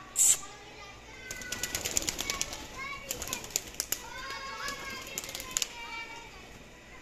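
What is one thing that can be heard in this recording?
Birds chirp and coo nearby.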